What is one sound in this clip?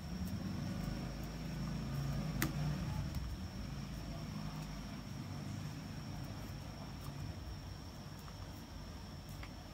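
Fingers rub and tug softly at a braided cord on a wrist.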